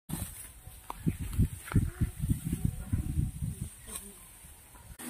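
A sickle cuts through dry rice stalks.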